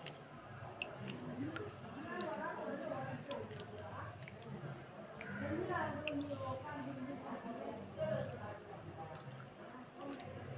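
Wet ceramic tiles click against each other while they are handled in water.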